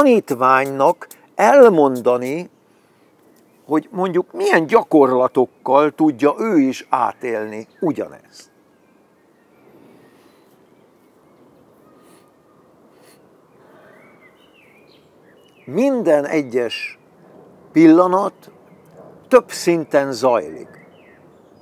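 An elderly man talks calmly close by, with pauses.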